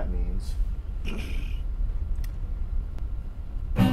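An acoustic guitar is strummed.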